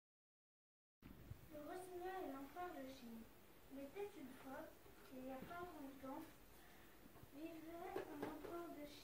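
A young girl speaks calmly close by.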